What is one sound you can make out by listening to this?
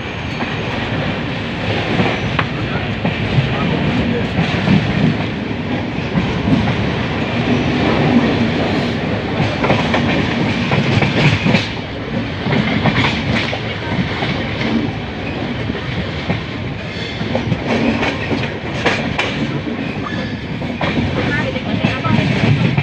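Steel wheels clatter over rail joints.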